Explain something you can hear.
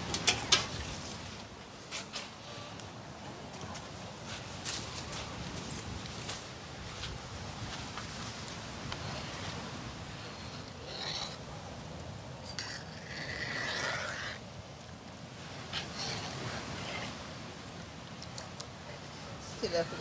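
A ladle scrapes and clinks against a metal pot.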